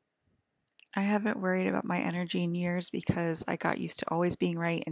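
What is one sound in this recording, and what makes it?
A woman speaks close by in a clear, steady voice.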